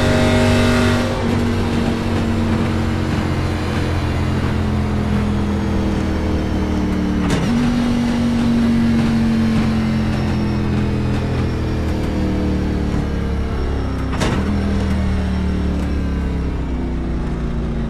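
A race car engine roars steadily, its pitch sagging and jumping as gears change.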